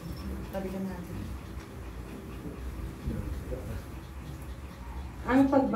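A ceiling fan whirs steadily overhead.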